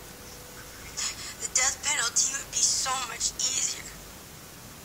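A young woman speaks in a tearful, pleading voice.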